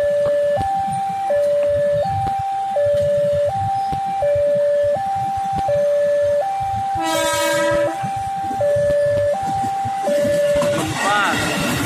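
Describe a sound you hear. A railway crossing bell rings steadily in a two-tone pattern.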